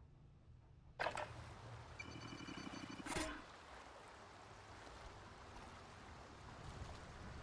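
Water sloshes and splashes as someone wades through it.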